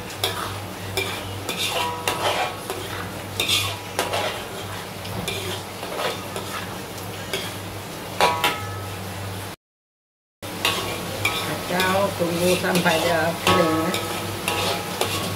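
Chilli paste sizzles in oil in a wok.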